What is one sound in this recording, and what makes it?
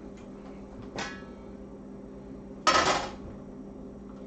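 A metal pot lid clanks as it is lifted off and set down.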